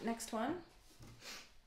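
A woman speaks briefly and casually close to a microphone.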